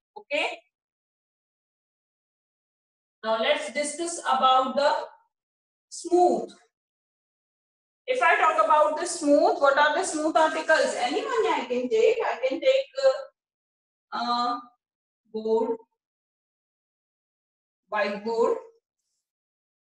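A woman speaks calmly, explaining, close by.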